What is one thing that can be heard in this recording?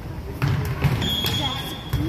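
A volleyball is struck with a thud.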